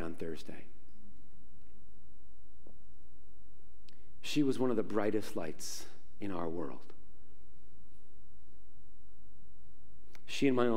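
A man speaks calmly into a microphone in a large echoing hall, with long pauses.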